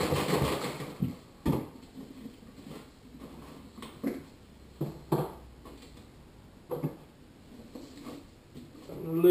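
Plastic containers knock and clatter as they are handled.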